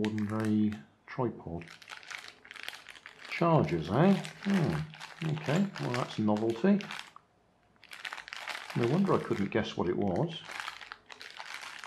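Plastic packaging crinkles in someone's hands.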